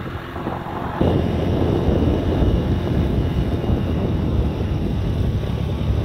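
Wind rumbles loudly outdoors while moving along.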